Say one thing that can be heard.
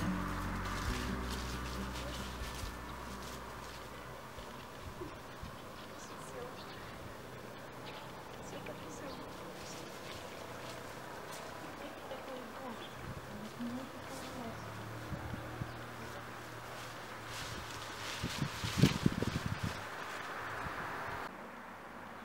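Footsteps rustle through dry fallen leaves.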